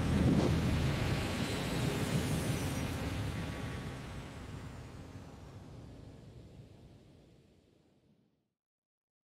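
A jet engine roars as an aircraft flies off and fades into the distance.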